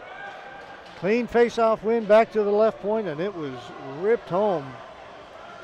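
Young men shout and cheer in celebration.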